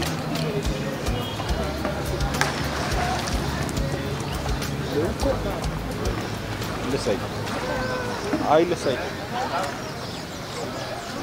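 Young men and women chatter and call out nearby.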